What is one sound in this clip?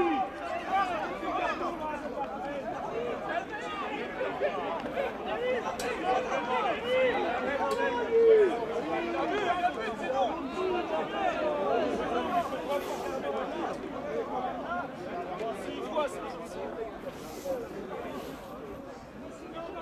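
Several young men shout and call out to each other outdoors, nearby and farther off.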